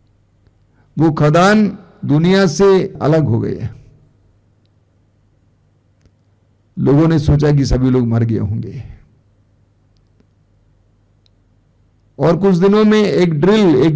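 An elderly man speaks with feeling into a close microphone, in short bursts with pauses.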